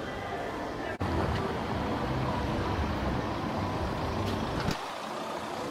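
A car drives over cobblestones.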